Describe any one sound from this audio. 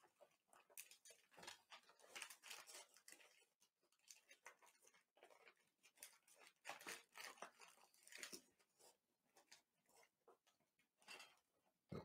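A man tears open a paper package with crinkling rustles.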